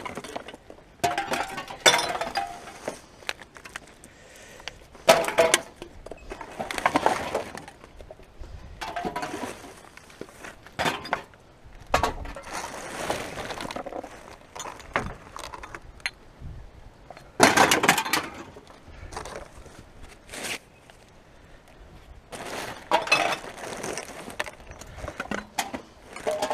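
Plastic bags and wrappers rustle and crinkle as gloved hands rummage through rubbish.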